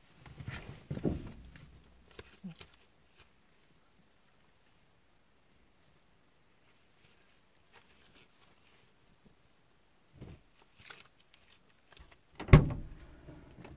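Objects bump and knock inside a car.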